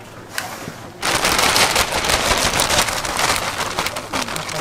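Shredded cheese rustles and patters as it is poured into a pan.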